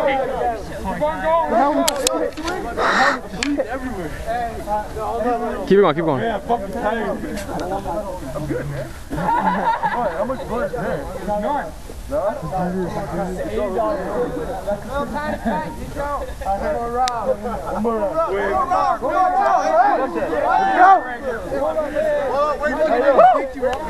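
A crowd of young men and women chatters and shouts outdoors.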